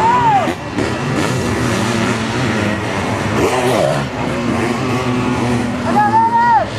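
Motocross sidecar outfits race past outdoors, their engines revving hard.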